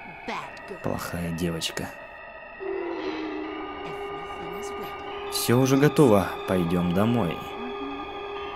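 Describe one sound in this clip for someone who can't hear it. An elderly woman speaks softly and eerily.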